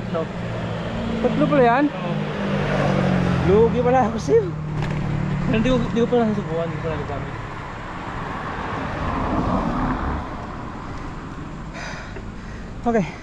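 Bicycle tyres hum on a paved road.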